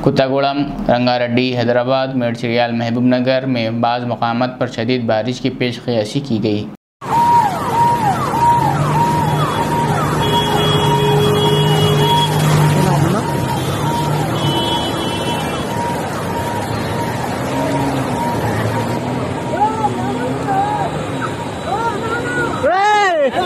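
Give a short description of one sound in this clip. Heavy rain pours and floodwater splashes.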